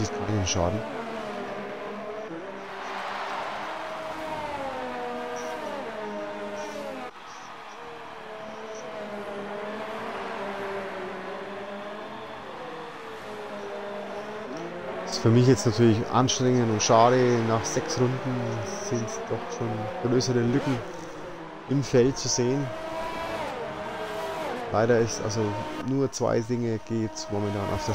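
Racing car engines whine at high revs, rising and falling as the cars speed through corners.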